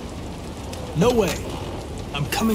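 A young man speaks briefly and tensely.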